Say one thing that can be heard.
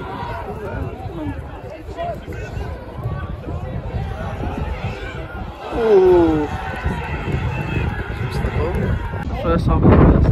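Footballers shout to each other across a field in the distance.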